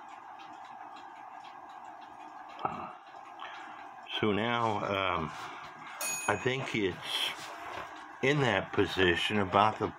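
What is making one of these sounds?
Small metal clock parts click softly as they are turned by hand.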